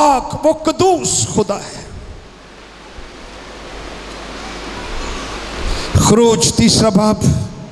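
An elderly man speaks with animation through a microphone in an echoing hall.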